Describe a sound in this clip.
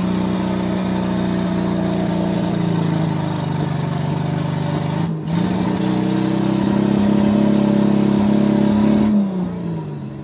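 A 4x4 pickup truck's engine revs hard while stuck in deep mud.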